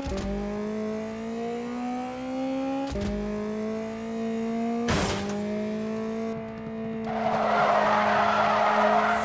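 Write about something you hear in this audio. A car engine revs high and climbs through the gears.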